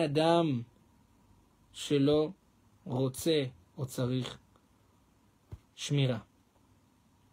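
A man speaks with animation in short bursts, close to a microphone.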